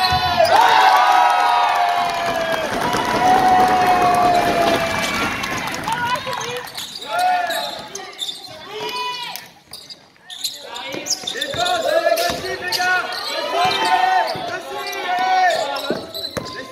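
Sneakers squeak sharply on a wooden floor, echoing in a large hall.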